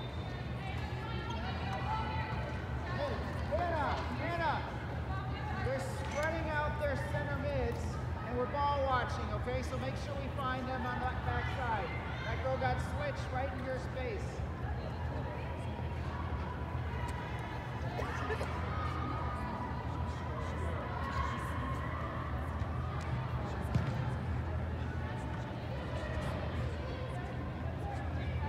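Young women shout and call out across a large echoing hall.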